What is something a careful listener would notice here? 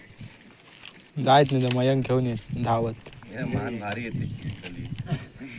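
Large leaves rustle and crinkle as they are folded.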